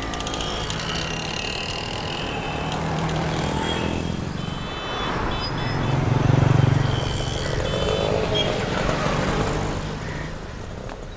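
Auto rickshaw and motorbike engines putter and drone in busy traffic.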